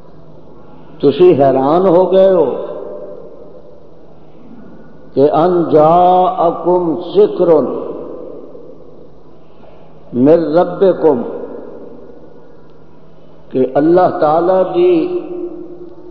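An elderly man preaches loudly in bursts through a microphone, echoing in a large hall.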